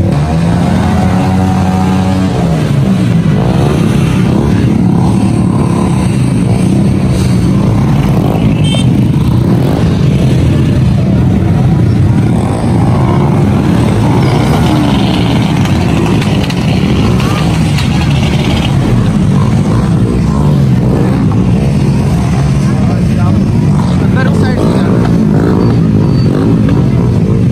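Many motorcycle engines idle and rev close by.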